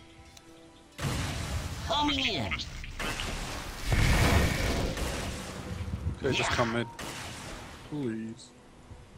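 Magic spells burst and crackle during a fight.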